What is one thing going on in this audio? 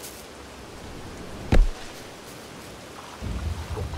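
Light rain patters steadily.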